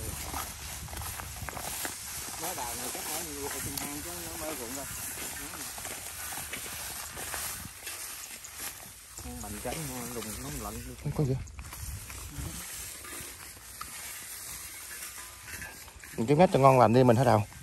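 Footsteps crunch through dry straw.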